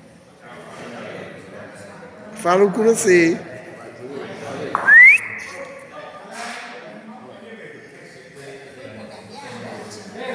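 A crowd of elderly people chatters in a large echoing hall.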